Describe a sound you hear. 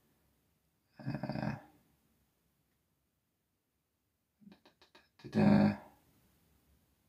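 A man speaks softly and calmly, close by.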